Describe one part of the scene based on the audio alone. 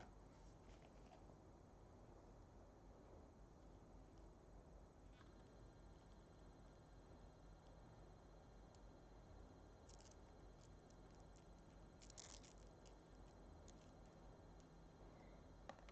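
A coiled cable rustles and rattles as hands unwind it.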